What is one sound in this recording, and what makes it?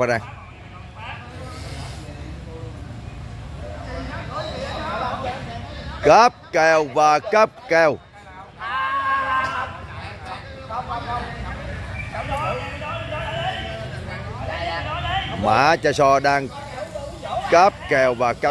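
A crowd of men chatters in the background outdoors.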